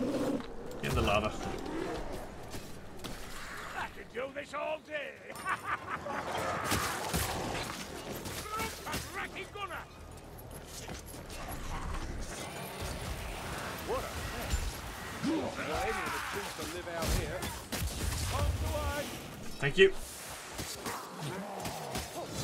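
Creatures snarl and grunt in combat.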